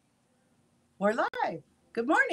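A middle-aged woman exclaims with animation over an online call.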